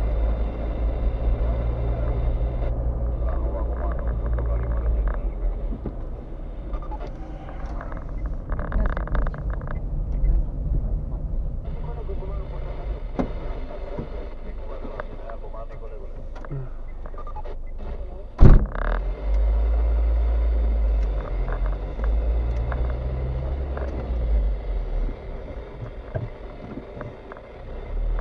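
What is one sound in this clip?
A car engine hums low from inside the cabin.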